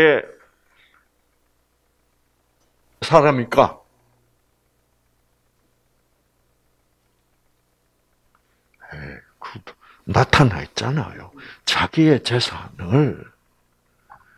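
An elderly man speaks calmly into a microphone, with long pauses.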